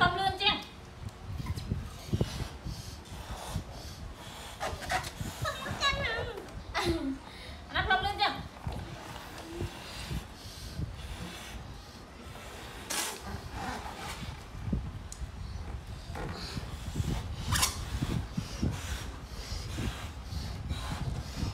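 A woman blows air into a balloon.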